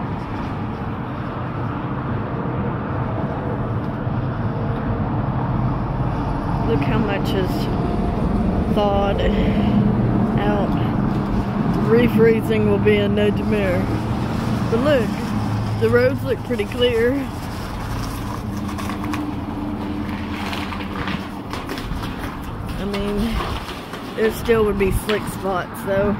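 Footsteps crunch slowly on icy ground.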